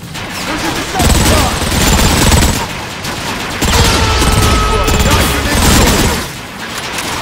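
Sci-fi energy blasters fire in bursts.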